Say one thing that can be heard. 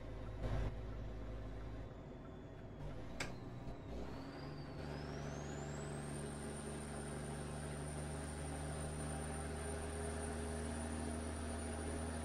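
A truck engine hums steadily and rises in pitch as it speeds up.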